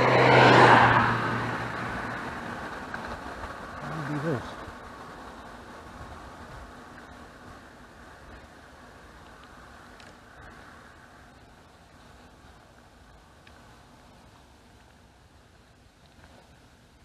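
Bicycle tyres roll steadily over a paved road.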